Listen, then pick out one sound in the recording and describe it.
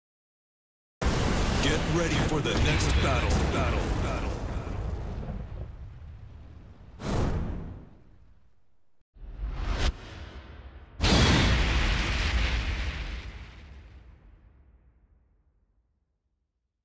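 Fiery whooshes roar up and slowly fade away.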